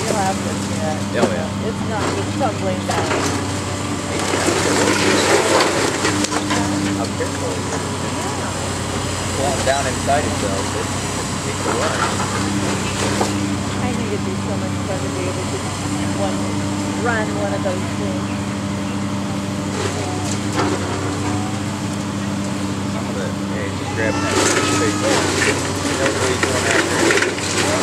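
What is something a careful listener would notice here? A heavy excavator engine rumbles and drones steadily.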